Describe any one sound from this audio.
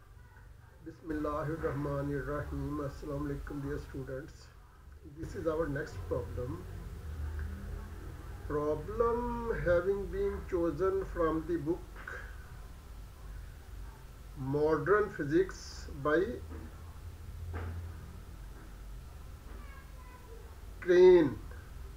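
An older man speaks calmly into a close microphone, with pauses.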